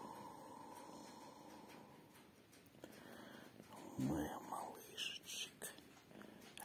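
A hand softly strokes an animal's fur.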